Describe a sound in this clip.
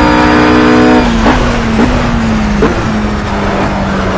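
A GT race car engine blips as it downshifts under braking.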